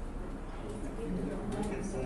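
A man gulps water.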